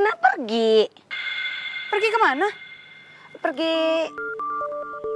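A young woman speaks with distress, close by.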